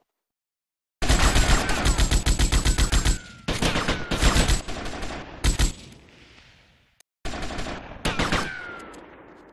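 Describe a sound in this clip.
A submachine gun fires in rapid bursts.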